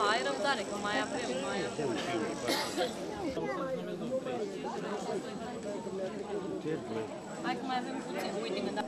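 A crowd of adults chatters close by outdoors.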